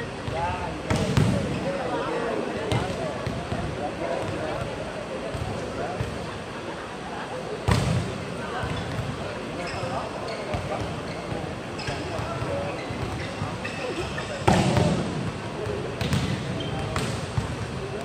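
A volleyball thumps as players hit it back and forth, echoing in a large hall.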